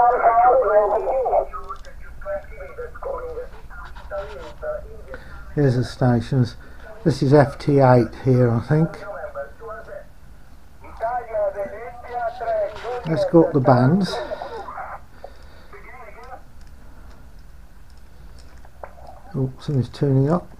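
A small radio receiver plays a crackly, warbling voice transmission through its speaker.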